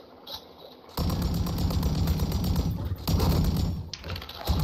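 A rapid burst of automatic gunfire rattles loudly.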